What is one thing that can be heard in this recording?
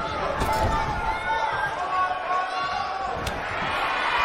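A heavy body slams onto a wrestling mat with a deep thud.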